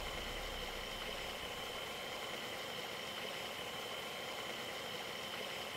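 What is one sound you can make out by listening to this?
A truck engine idles with a steady hum.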